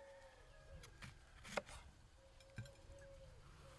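A knife cuts through a crisp bell pepper.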